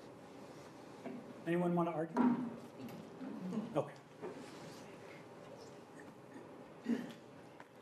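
An elderly man speaks calmly through a microphone in a large room.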